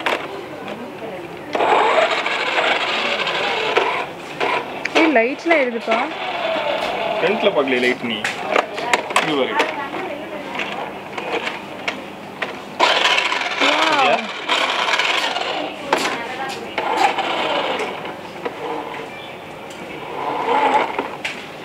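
A toy car's small electric motor whirs as it drives.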